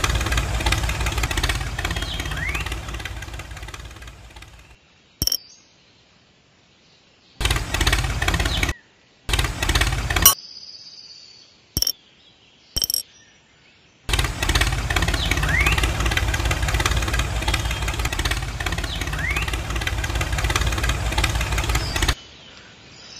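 A small toy motor whirs and buzzes steadily.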